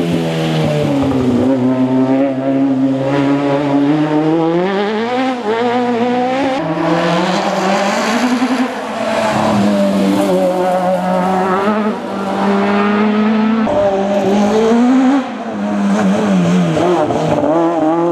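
A racing car engine revs hard and roars past again and again, its pitch rising and falling with gear changes.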